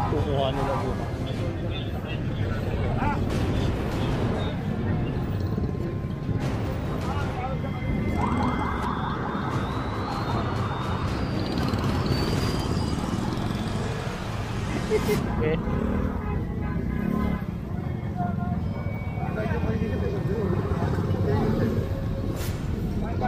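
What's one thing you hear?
Men and women talk in a crowd nearby.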